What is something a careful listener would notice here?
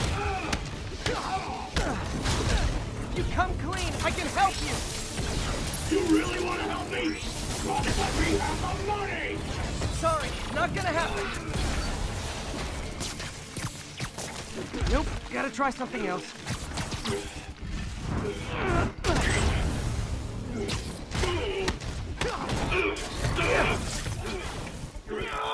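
Punches and blasts thud and crash in a fight.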